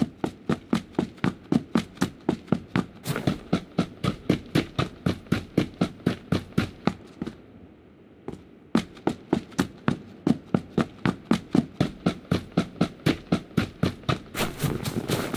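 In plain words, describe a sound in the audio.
Quick footsteps run steadily over hard ground.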